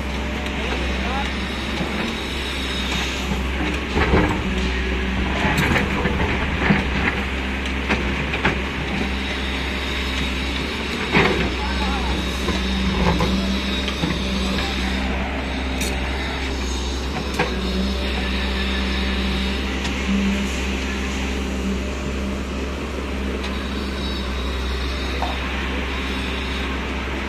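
A diesel excavator engine rumbles steadily close by.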